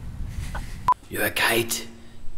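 A bearded man speaks close by.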